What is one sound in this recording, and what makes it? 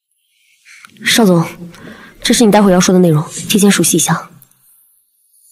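A young woman speaks with animation.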